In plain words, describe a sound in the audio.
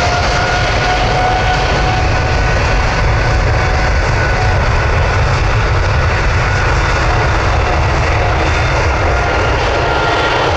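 A jet airliner's engines roar steadily as it rolls along a runway.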